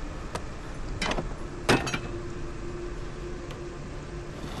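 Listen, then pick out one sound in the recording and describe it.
Hands knock and scrape against wooden planks.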